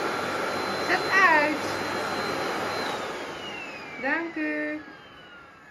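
A small child squeals nearby.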